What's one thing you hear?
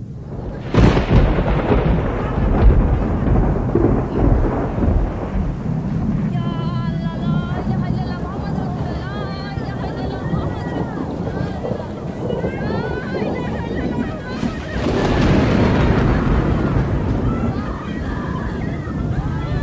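Floodwater rushes and swirls steadily.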